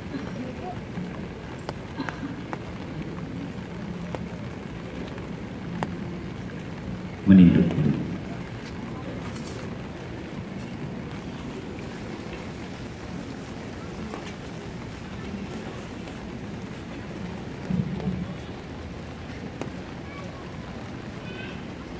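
A large crowd murmurs softly.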